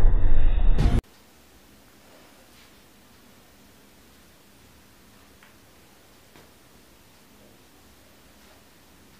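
Soft thuds of a person moving on a rug.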